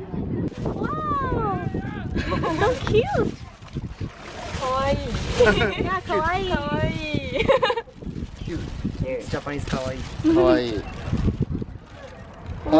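A plastic bag rustles and crinkles up close.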